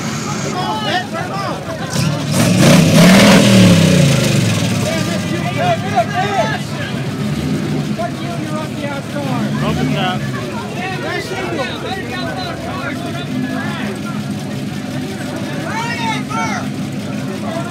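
A car engine idles with a deep rumble.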